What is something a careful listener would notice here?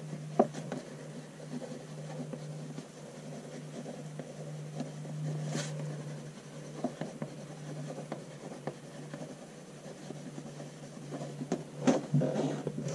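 A pen scratches softly across paper in short strokes.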